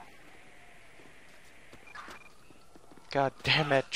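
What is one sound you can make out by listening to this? Footsteps run on concrete.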